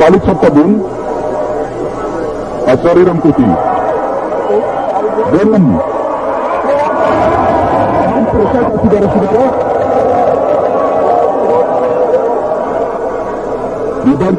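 A large stadium crowd roars steadily, swelling as an attack builds.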